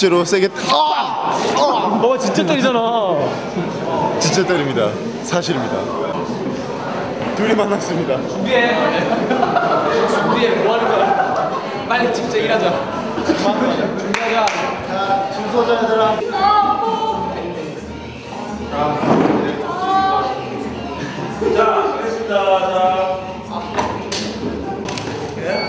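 Several young men talk and joke loudly close by.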